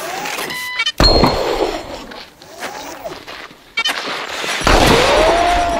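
Gunshots bang loudly.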